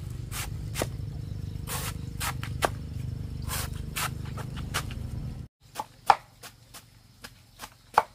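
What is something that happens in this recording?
A cleaver chops sharply into a bamboo shoot on the ground, again and again.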